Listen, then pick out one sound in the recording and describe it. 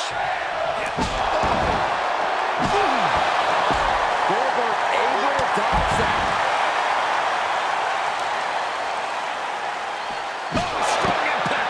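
Heavy bodies slam hard onto a floor.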